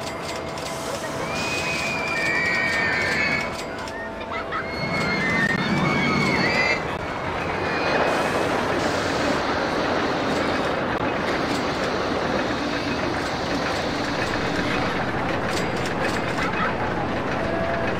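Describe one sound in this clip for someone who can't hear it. A roller coaster rattles and rumbles along its track.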